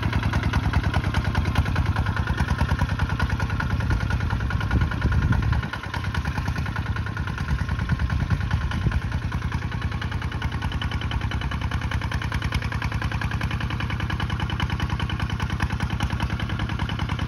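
A small diesel engine chugs steadily and loudly nearby.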